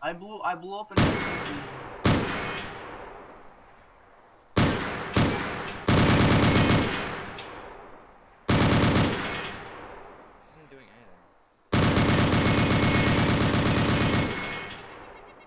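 A rifle fires rapid bursts of loud shots that echo away.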